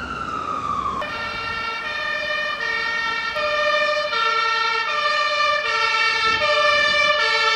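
A fire engine's two-tone horn sounds in a repeating high-low pattern.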